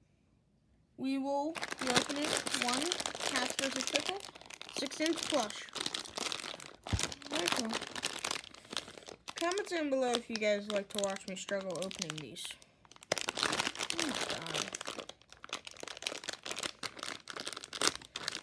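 A plastic bag crinkles and rustles as hands tear and squeeze it.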